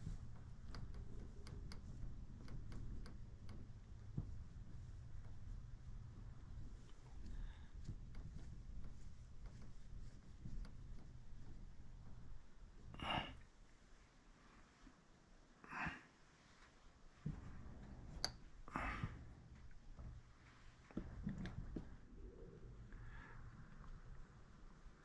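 Fingers rub and smooth soft clay.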